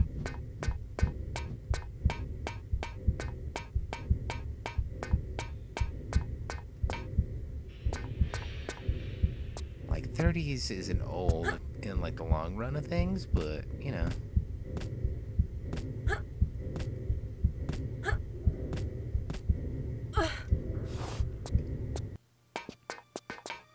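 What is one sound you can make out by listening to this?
Quick footsteps run on a hard metal floor.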